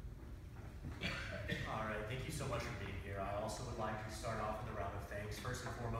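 A young man speaks clearly and formally in a room with a slight echo.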